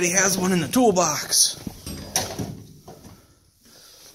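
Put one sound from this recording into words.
A metal drawer slides open.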